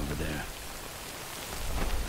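Rain pours down steadily.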